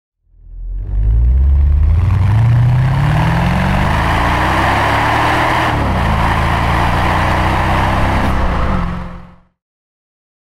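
Tyres rumble over cobblestones and then hum on asphalt.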